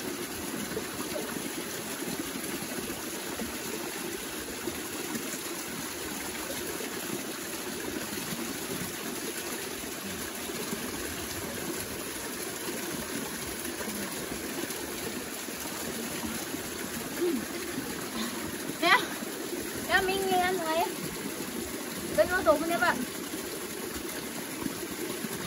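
A small waterfall splashes steadily onto rocks.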